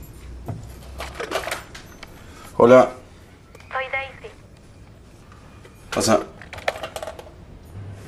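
A young man speaks quietly into a phone.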